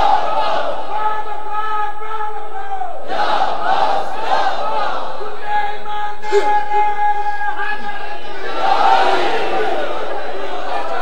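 A crowd of men chants along in rhythm.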